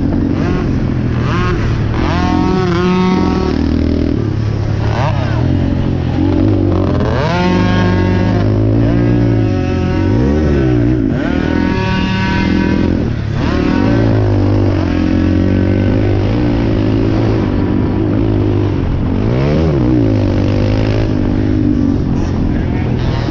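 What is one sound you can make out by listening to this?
A quad bike engine roars close by, revving up and down.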